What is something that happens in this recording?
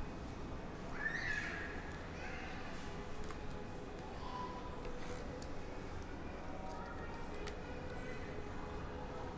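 A hard plastic card case clicks and taps softly as hands turn it.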